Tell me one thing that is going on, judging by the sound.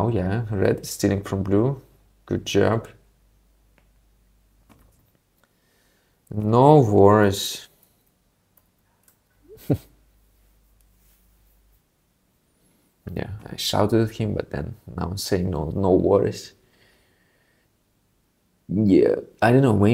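A young man talks casually and with animation into a close microphone.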